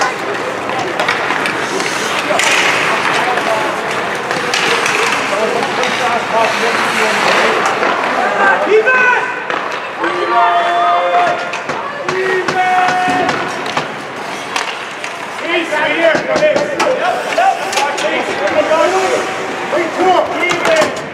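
Spectators shout and cheer in an echoing rink.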